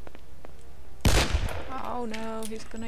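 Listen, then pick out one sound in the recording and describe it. A revolver fires a loud shot that echoes.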